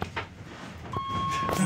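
An elevator chime rings with a steady tone.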